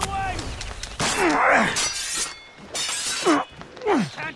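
A blade strikes with a sharp slash.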